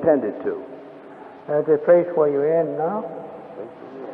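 A man reads aloud in a calm voice.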